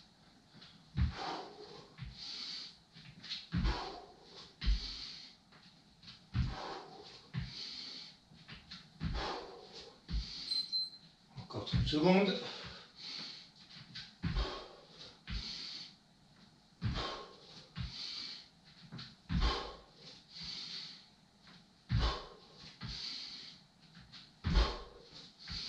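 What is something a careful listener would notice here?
Bare feet and hands thump softly on a mat.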